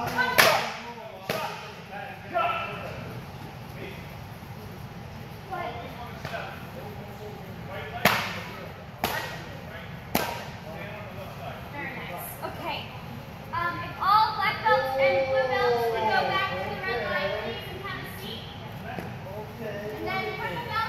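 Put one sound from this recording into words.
Young people talk and call out in an echoing hall.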